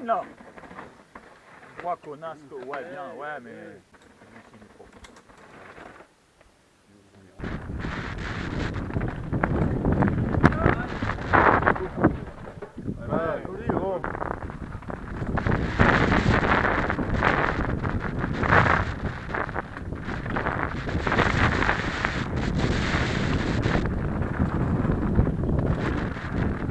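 Bicycle tyres rattle and crunch over a rocky trail.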